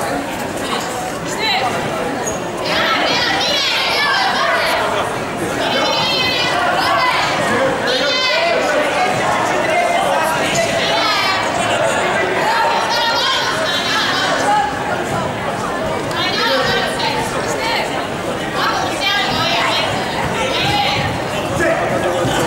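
A crowd in a large echoing hall shouts and cheers.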